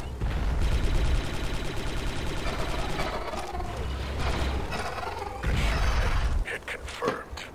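A blaster rifle fires rapid shots with electronic zaps.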